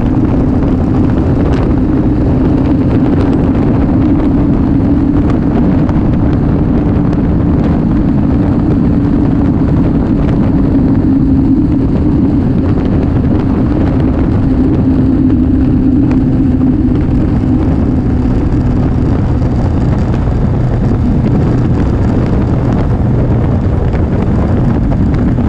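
Wind rushes loudly past the rider.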